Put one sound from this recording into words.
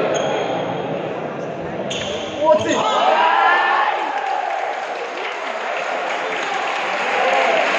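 Rackets strike a shuttlecock back and forth in an echoing hall.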